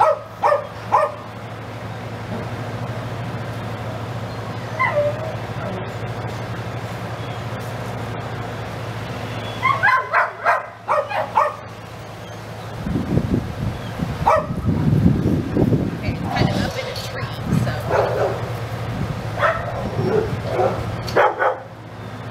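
A woman speaks to a dog in short, calm phrases.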